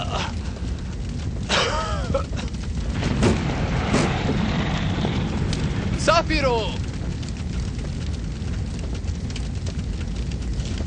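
Flames crackle and pop.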